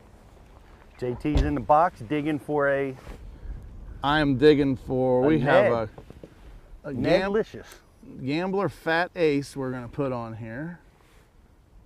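A man speaks calmly nearby outdoors.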